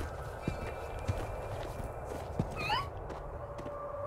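A cartoonish creature squawks and chirps close by.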